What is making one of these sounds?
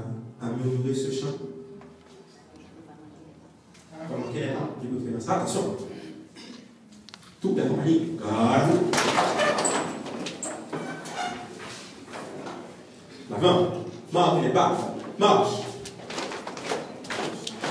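A young man speaks loudly through a microphone and loudspeakers, with animation.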